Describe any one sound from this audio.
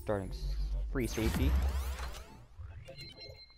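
A game plays a bright whooshing upgrade effect.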